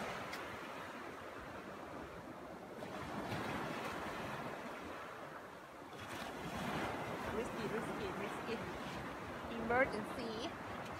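Waves wash steadily onto a beach.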